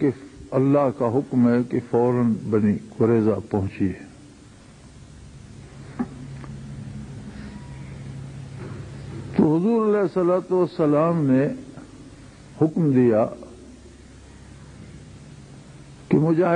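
An elderly man speaks slowly and solemnly into a microphone, with pauses.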